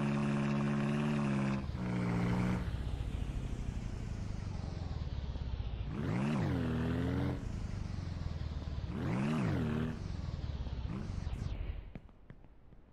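A small vehicle's engine hums steadily as it drives.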